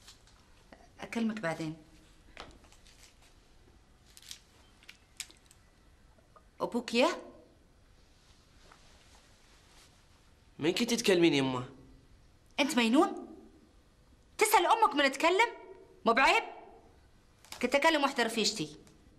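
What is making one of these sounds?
A woman speaks in short, emotional phrases nearby.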